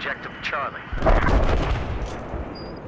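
A rifle fires a sharp, loud shot.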